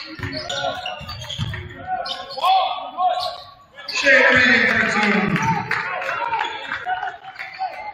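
Sneakers squeak sharply on an echoing gym floor.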